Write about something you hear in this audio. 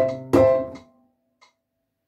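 A piano chord rings out and fades away.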